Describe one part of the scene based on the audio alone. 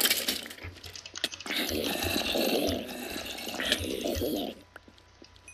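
A zombie groans.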